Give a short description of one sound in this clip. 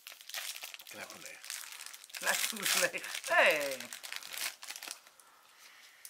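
Plastic packaging crinkles as it is torn open.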